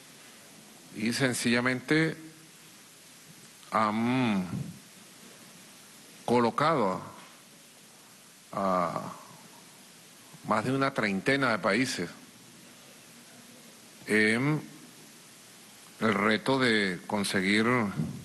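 A man speaks slowly and calmly into a microphone, with long pauses between phrases.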